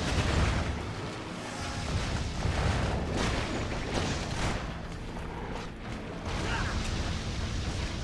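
Magic spells burst with loud whooshes and hits.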